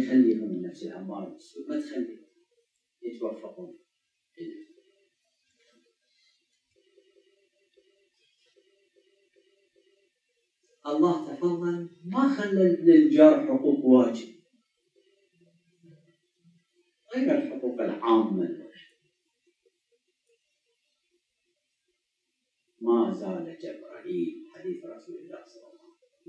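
An elderly man speaks calmly into a microphone, in bursts with long pauses.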